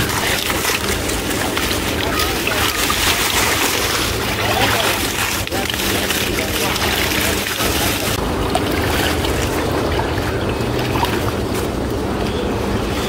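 Water splashes and sloshes.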